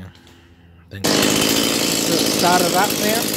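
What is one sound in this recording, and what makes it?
A chainsaw is picked up and handled with rough rustling and knocks.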